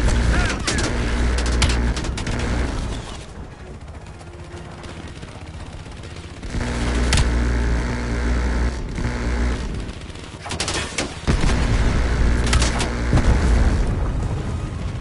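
A helicopter's rotor thumps steadily.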